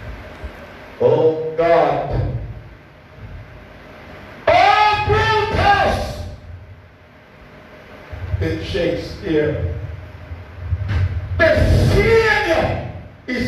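A man preaches loudly and with passion through a microphone in an echoing hall.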